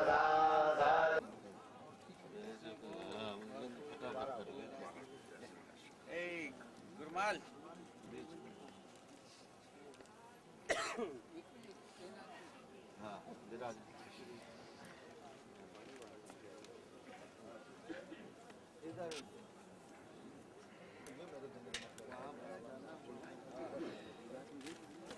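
A crowd of men talk and murmur nearby outdoors.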